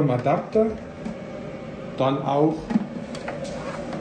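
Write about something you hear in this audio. A plug is pushed into a socket with a soft click.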